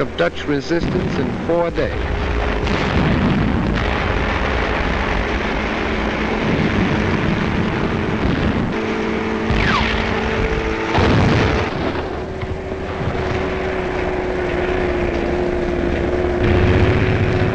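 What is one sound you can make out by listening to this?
Tank engines rumble and clatter.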